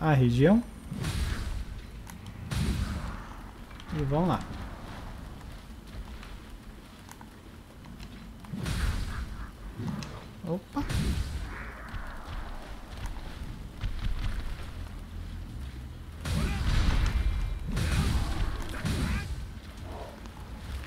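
Heavy sword blows slash and strike with loud whooshes and impacts.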